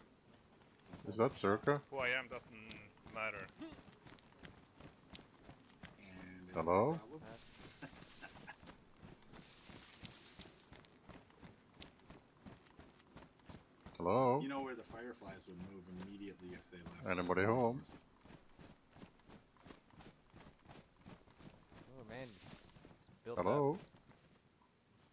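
Footsteps patter steadily over grass and pavement.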